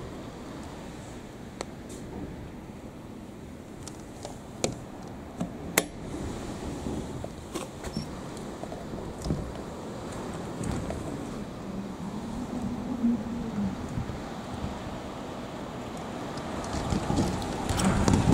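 Heavy rain pours steadily outside.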